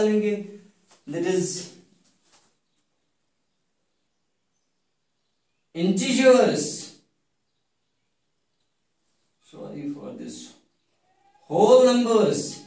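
A man speaks calmly in short phrases, explaining with pauses between.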